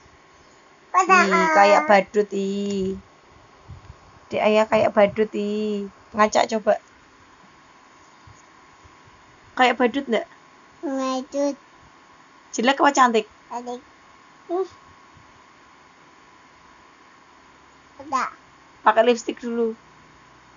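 A young girl talks and squeals excitedly close by, in short bursts.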